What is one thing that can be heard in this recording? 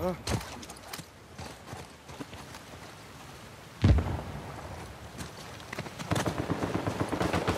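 Footsteps run over stone and grass.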